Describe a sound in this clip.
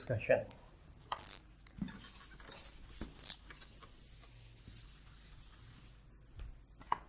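A cloth wipes across a whiteboard with a soft, rubbing hiss.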